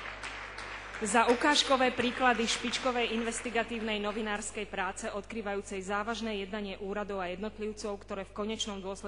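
A woman reads out through a microphone in a large hall.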